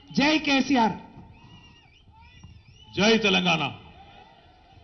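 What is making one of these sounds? A man shouts loudly into a microphone over loudspeakers in short bursts.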